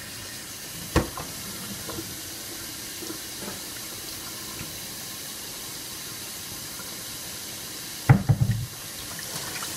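A metal pot lid clinks as a hand lifts and sets it down.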